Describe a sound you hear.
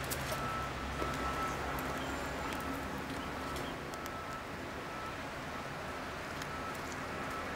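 Fabric scrapes softly against rough brick as a young woman shifts along a wall.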